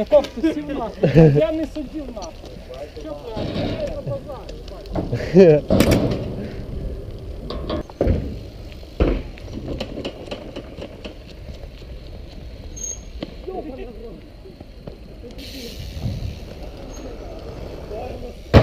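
Bicycle tyres roll over rough pavement.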